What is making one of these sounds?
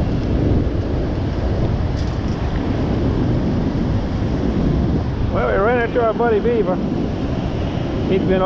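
Shallow surf washes and fizzes over sand.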